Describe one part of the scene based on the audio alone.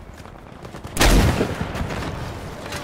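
A loud explosion booms close by and rumbles away.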